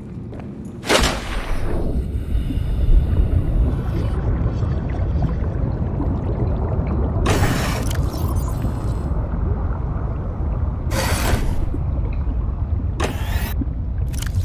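Deep water rumbles with a low, muffled roar.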